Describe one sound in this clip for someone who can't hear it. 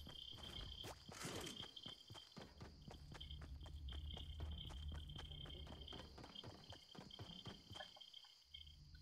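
Footsteps thud quickly and steadily on a wooden floor.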